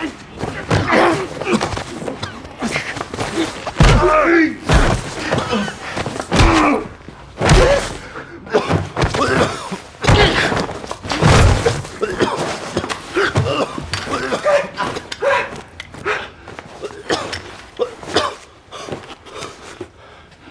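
A middle-aged man groans and gasps in pain close by.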